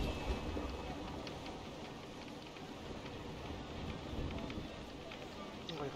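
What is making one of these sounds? Waves wash and splash against a wooden ship's hull.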